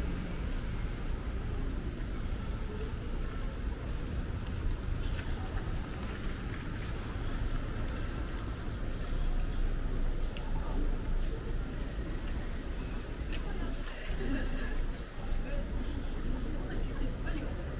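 Footsteps walk steadily on a wet street.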